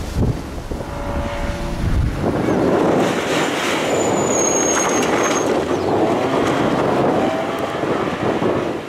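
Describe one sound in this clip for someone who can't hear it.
A rally car engine roars loudly as the car speeds past up close.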